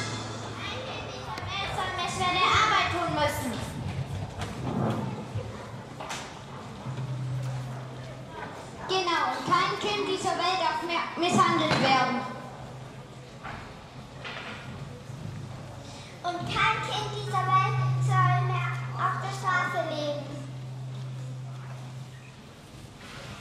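Young children speak out loudly in a large echoing hall.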